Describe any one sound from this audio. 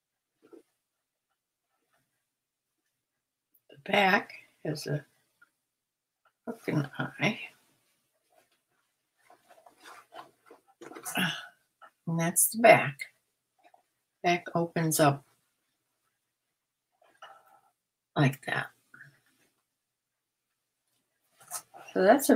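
Fabric rustles as it is unfolded and handled.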